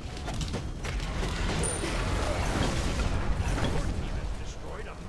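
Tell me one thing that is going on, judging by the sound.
A stone tower crumbles and collapses with a heavy rumble.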